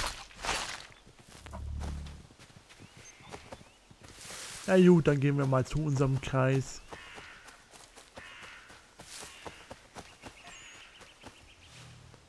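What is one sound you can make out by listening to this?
Footsteps run quickly through grass and leaves.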